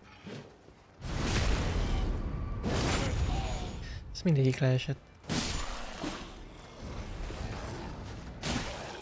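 A sword clashes and slashes in a fight.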